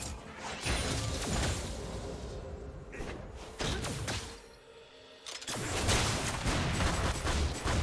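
Game spell blasts and weapon hits clash in a busy fight.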